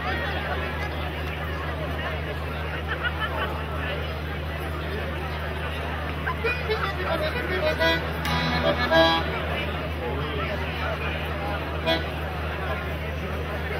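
A fiddle plays the melody.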